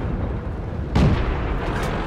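A tank gun fires with a loud boom.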